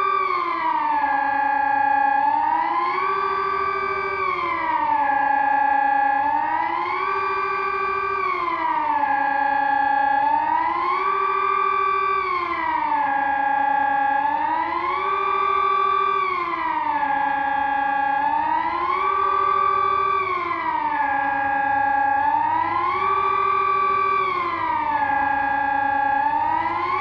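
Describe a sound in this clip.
A siren wails steadily up and down, rising and falling every few seconds.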